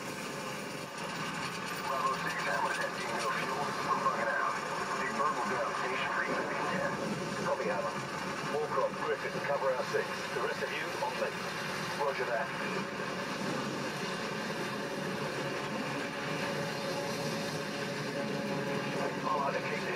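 Shooting game sounds play from a television's speakers, heard across a room.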